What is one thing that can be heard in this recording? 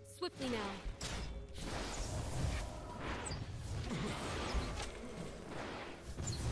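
Game sound effects of magic spells and sword blows clash and crackle.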